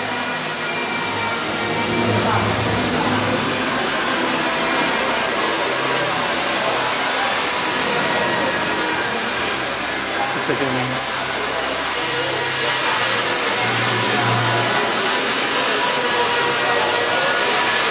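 A crowd of men and women chatters nearby in a large echoing hall.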